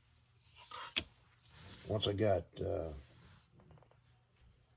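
Small wooden parts click and tap on a hard surface.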